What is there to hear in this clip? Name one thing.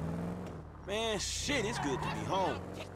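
Tyres screech as a car skids sideways.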